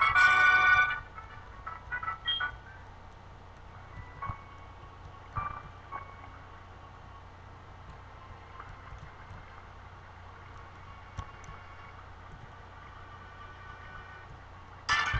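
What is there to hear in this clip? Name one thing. Soft video game background music plays quietly.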